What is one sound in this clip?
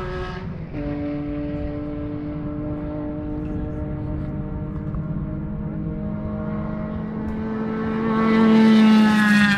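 A racing car engine drones in the distance and grows to a loud roar as the car approaches.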